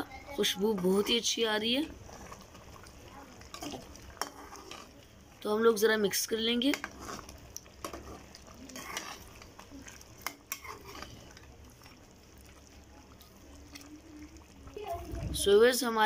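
A metal ladle scrapes and stirs inside a metal pot.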